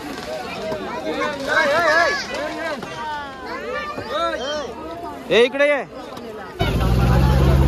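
Water splashes as children swim and wade.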